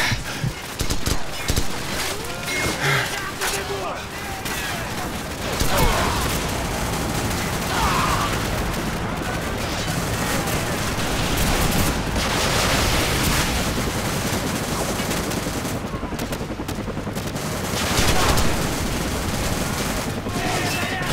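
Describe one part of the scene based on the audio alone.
Gunfire crackles and booms in the distance.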